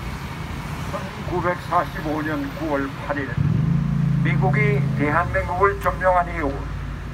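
A man speaks firmly into a microphone, heard through a loudspeaker outdoors.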